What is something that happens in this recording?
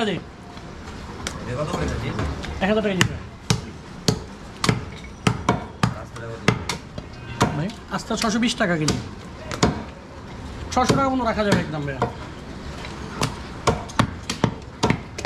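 A cleaver chops through meat and bone on a wooden block with sharp, repeated knocks.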